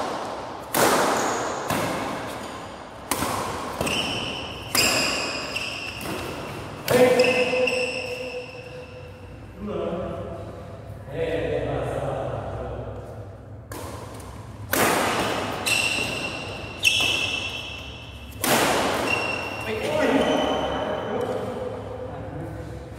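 Badminton rackets smack a shuttlecock in a large echoing hall.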